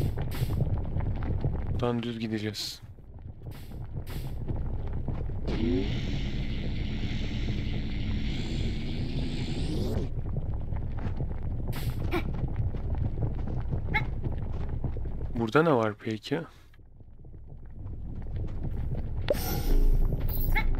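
Lava rumbles low and steady.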